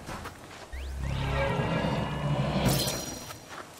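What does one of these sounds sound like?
A crackling energy blast whooshes and hums.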